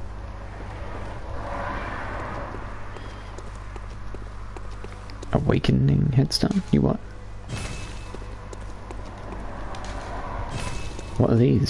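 Footsteps run over stone and earth.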